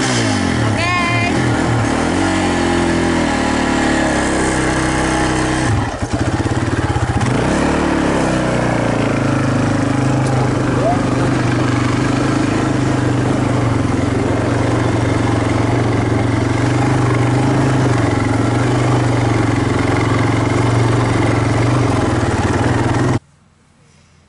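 Wind buffets loudly as the bike rides along.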